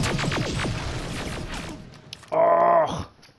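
Gunfire and debris crackle in a loud battle.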